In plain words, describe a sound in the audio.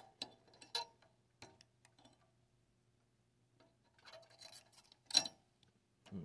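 A metal tool taps and scrapes against electronic parts.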